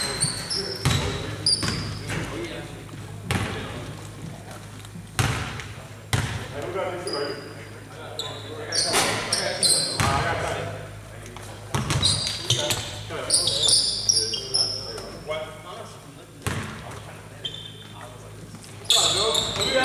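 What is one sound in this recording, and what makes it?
A basketball bounces on a hardwood floor with sharp echoing thuds.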